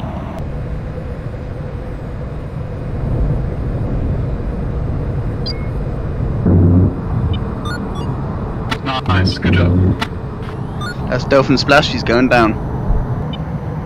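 A fighter jet engine roars in flight.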